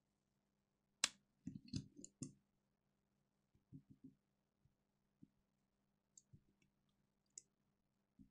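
A handheld game console clicks and taps softly as hands handle it on a table.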